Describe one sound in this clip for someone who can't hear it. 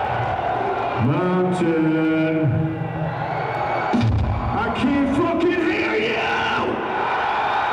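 A man sings and shouts into a microphone.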